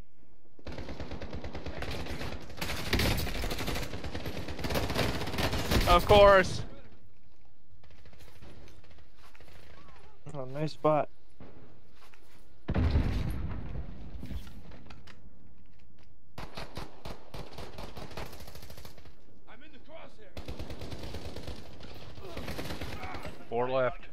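Gunfire crackles in rapid bursts, close by.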